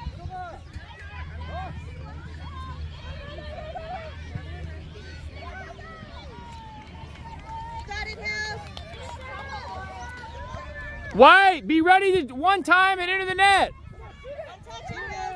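Children shout and call out in the distance outdoors.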